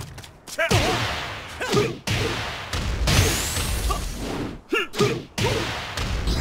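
Heavy punches and kicks land with loud cracking impacts.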